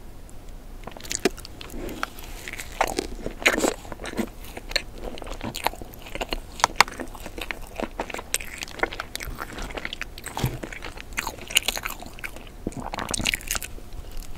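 A woman bites and chews a soft doughnut close to the microphone.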